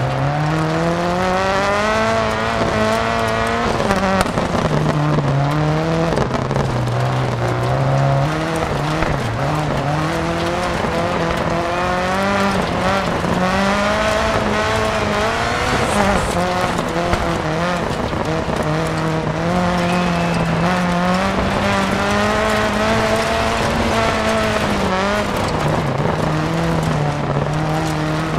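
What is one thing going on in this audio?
A rally car engine revs hard, rising and falling as the gears change.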